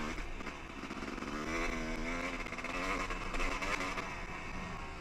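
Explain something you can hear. Tyres crunch over a dirt trail.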